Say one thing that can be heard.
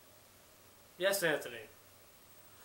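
A young man speaks briefly and calmly, close by.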